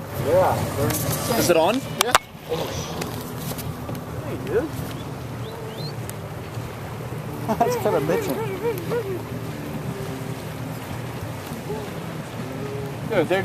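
Water swishes and laps against a moving boat's hull.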